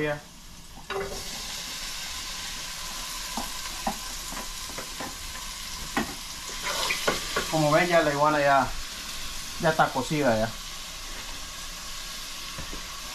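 Food sizzles in hot oil in a pot.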